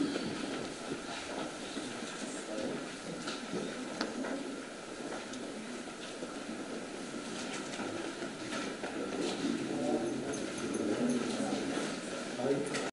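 A crowd of men talk and murmur close by.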